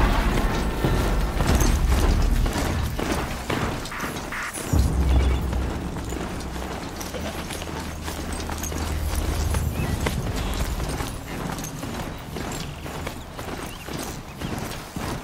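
Hooves of a large mechanical mount thud steadily on snowy ground.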